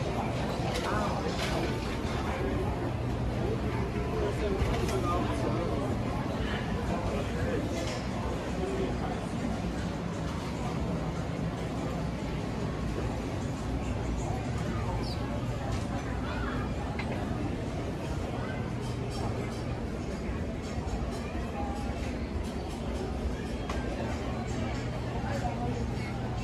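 A crowd murmurs nearby.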